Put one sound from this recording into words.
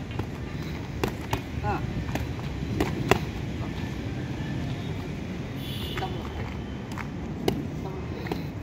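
Boxing gloves thud sharply against gloves and pads in uneven punches.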